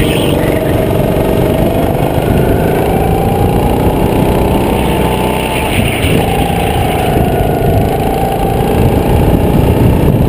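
A kart engine whines loudly up close, its pitch rising and falling with the speed.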